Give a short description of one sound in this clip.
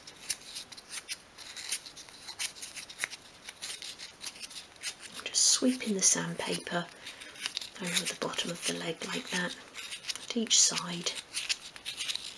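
Paper rustles softly.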